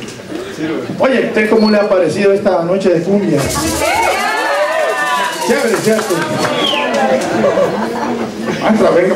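A man speaks with animation into a microphone over loudspeakers in a large hall.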